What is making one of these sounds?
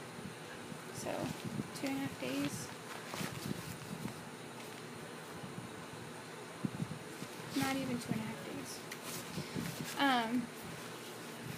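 A woman speaks quietly and close by, in short phrases with pauses.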